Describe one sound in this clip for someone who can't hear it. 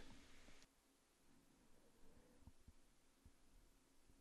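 A light box is set down on a table with a soft knock.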